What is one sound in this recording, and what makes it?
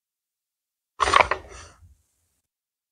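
A young woman sniffs deeply, close by.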